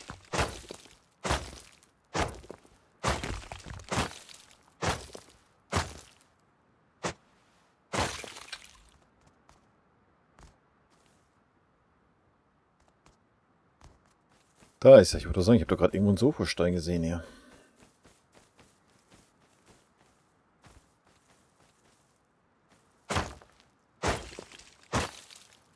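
A stone hatchet strikes rock with sharp, repeated knocks.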